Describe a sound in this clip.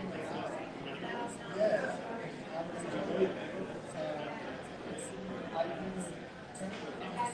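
Several adult men and women talk at a distance, with overlapping chatter.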